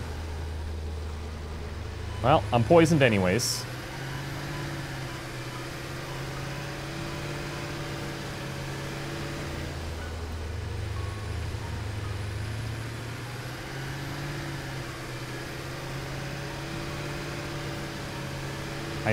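A vehicle engine hums steadily as it drives over rough ground.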